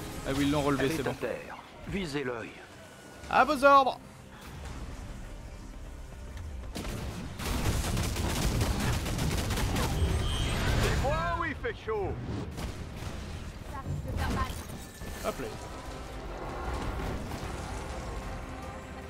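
Energy blasts crackle and zap in a video game.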